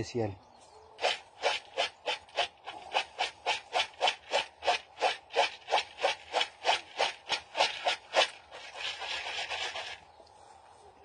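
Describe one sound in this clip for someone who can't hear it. Dried seeds rattle and rustle as a man shakes them in a plastic bowl.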